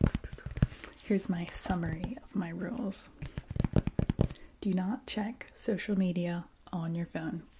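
A young woman speaks softly and calmly close to a microphone.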